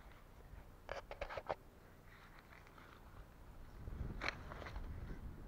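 Garden loppers snip through vine stems with sharp clicks.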